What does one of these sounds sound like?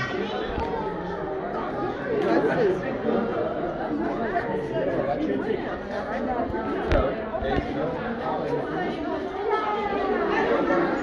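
A crowd of adults and children chatters in a busy echoing hall.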